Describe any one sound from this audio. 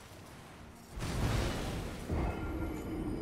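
A heavy metal weapon crashes down with a loud boom.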